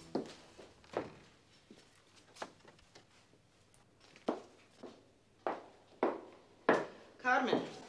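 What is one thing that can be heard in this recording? Footsteps knock slowly on a wooden floor.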